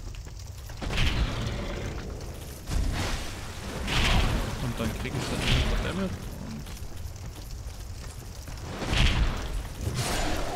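Heavy blows thud and clang as a sword strikes a large creature.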